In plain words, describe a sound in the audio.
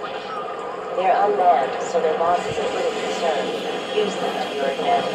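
A large explosion booms in a video game.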